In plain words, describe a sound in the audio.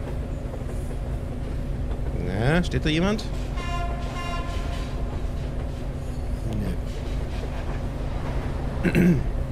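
A subway train rumbles along rails through a tunnel.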